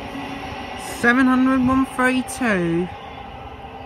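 An electric train sounds its two-tone horn.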